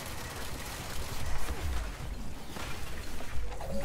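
An explosion bursts.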